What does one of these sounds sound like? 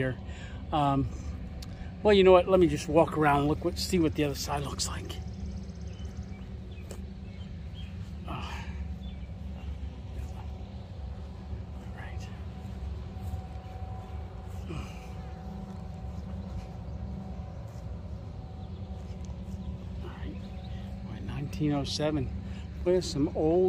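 An elderly man talks calmly, close to the microphone, outdoors.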